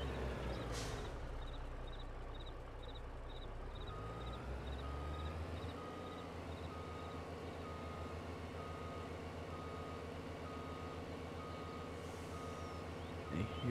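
A truck engine rumbles steadily.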